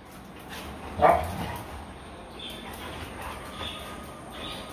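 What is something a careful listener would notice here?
Dogs growl playfully as they wrestle.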